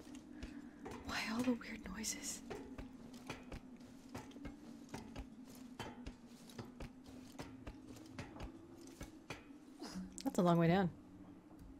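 Hands clank on metal ladder rungs while climbing.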